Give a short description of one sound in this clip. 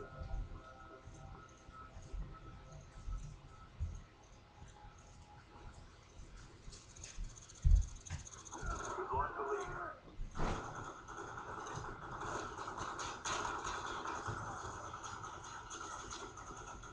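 Gunfire from a video game plays through television speakers.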